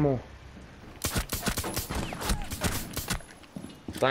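Pistol shots fire in rapid bursts.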